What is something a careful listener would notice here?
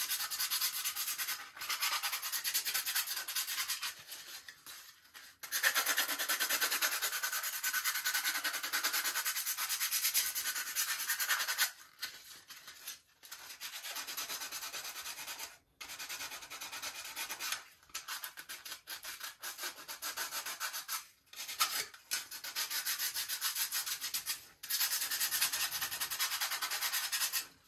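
Sandpaper rasps by hand against a molded plastic part in short bursts.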